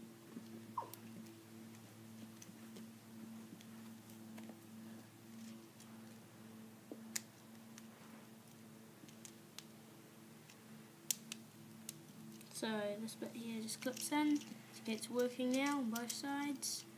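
Small plastic pieces click and snap together.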